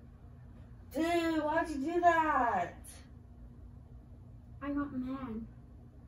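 A young woman speaks loudly and with animation nearby.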